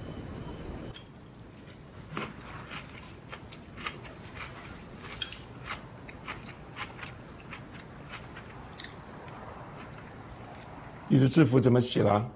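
Chopsticks clink against bowls.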